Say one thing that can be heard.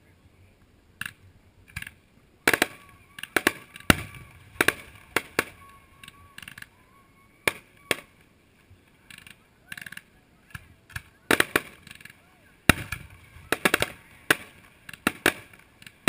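Fireworks bang and crackle in the distance, outdoors.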